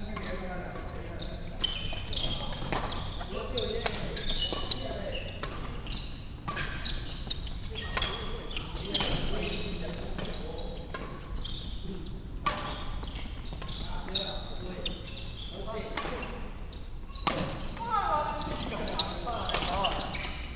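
Shoes squeak on a hard floor.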